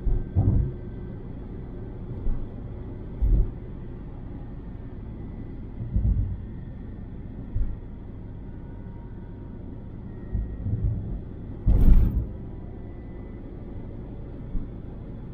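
A car drives steadily along a highway with a low road rumble.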